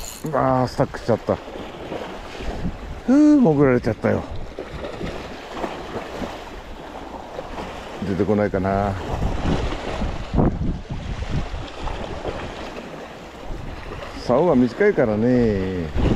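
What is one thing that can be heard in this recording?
Small waves lap and splash nearby.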